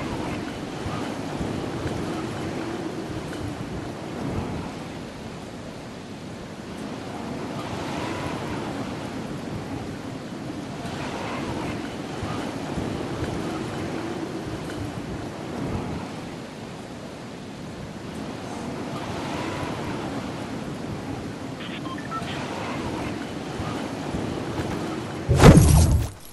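Wind rushes steadily past a glider drifting down.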